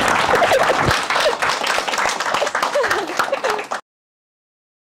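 A crowd claps and applauds loudly.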